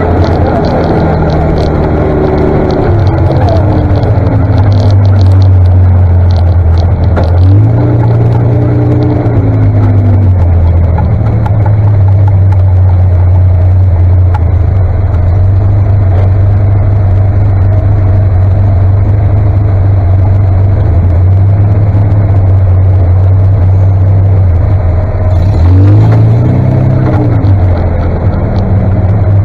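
A tractor engine rumbles loudly and steadily close by.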